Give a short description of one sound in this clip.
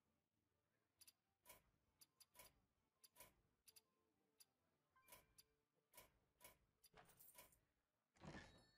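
Menu buttons click with short chimes.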